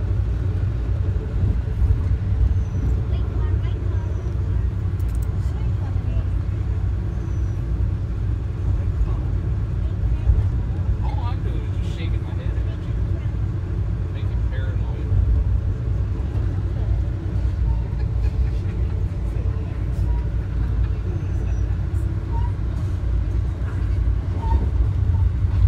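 A train rumbles along steadily at speed, heard from inside a carriage.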